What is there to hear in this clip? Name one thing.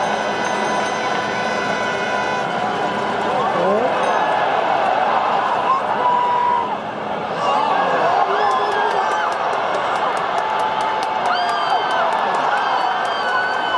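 A large stadium crowd cheers and roars outdoors.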